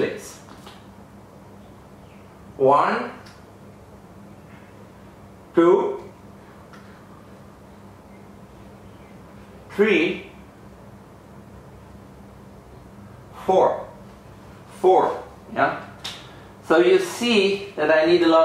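A man speaks calmly in short phrases with long pauses, close by.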